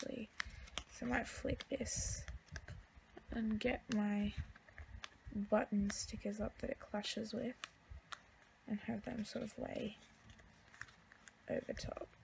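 Sticker paper rustles and crinkles close by.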